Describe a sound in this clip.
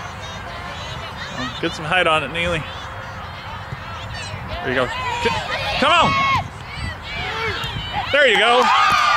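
A crowd of adults shouts and cheers from the sidelines outdoors.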